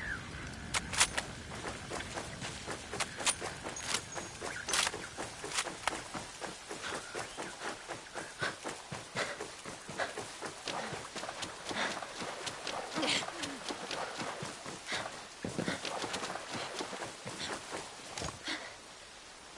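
Footsteps rustle quickly through tall grass and undergrowth.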